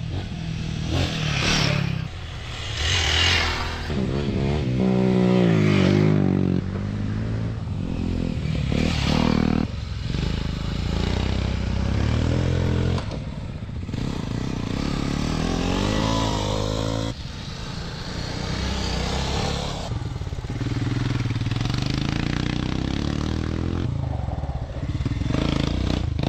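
Motorcycle engines rev and roar as dirt bikes ride past nearby.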